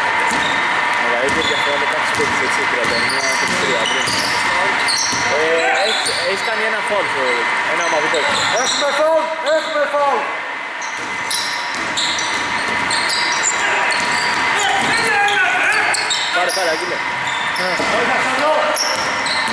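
Men shout to each other across an echoing gym.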